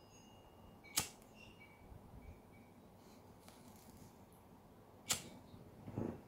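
A lighter clicks as it is struck.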